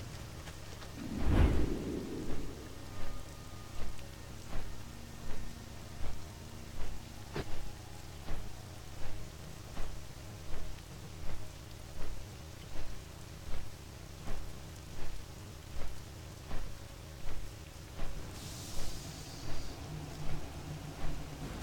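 Large wings flap with steady, rhythmic whooshes.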